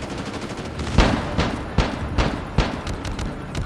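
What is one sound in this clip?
A gun fires several loud shots in quick succession.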